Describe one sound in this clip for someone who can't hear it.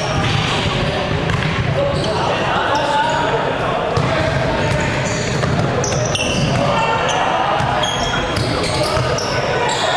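Sneakers squeak on a wooden floor in a large echoing hall.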